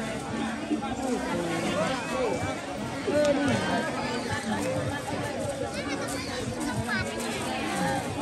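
A large crowd of men and women chatters and calls out nearby.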